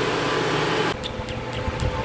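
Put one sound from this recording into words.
A woman kisses a child's cheek.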